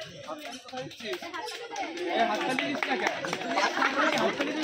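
A group of young girls sing together.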